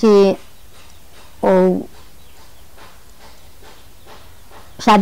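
An elderly woman speaks slowly and quietly, close by.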